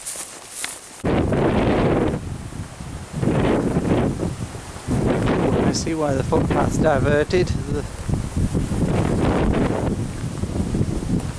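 Strong wind gusts rumble outdoors.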